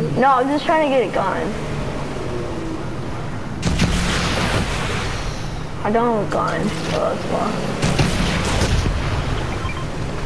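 Water splashes and churns behind a speeding boat.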